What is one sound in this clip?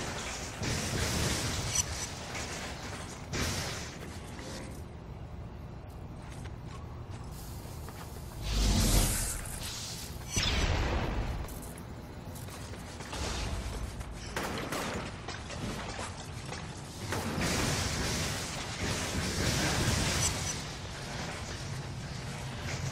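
Electric bolts crackle and zap in bursts.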